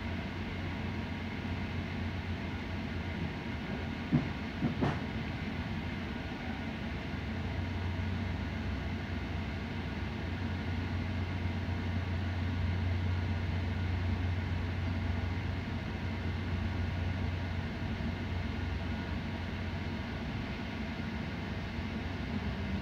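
A train rumbles steadily along the tracks, heard from inside a carriage.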